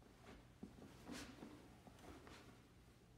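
A piano plays a few notes in an echoing hall.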